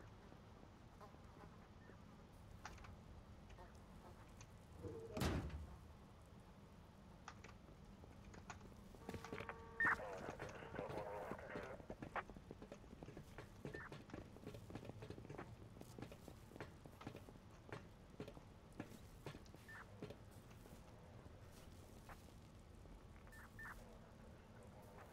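Footsteps crunch over scattered debris on a hard floor.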